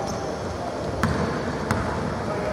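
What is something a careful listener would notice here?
A basketball bounces on a wooden floor, echoing through the hall.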